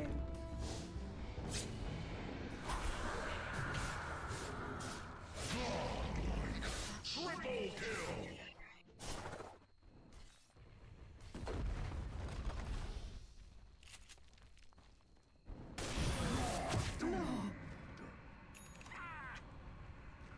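Fantasy battle sound effects clash and burst.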